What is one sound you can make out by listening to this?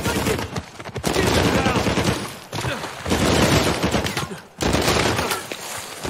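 Automatic gunfire rattles in rapid bursts.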